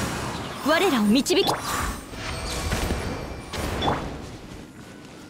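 Whooshing and crackling fighting sound effects burst out loudly.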